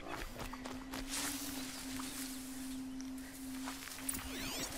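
Dry grass rustles as someone pushes through it.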